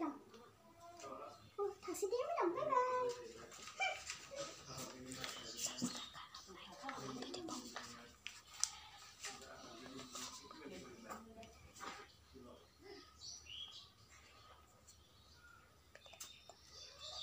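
A young girl talks softly close by.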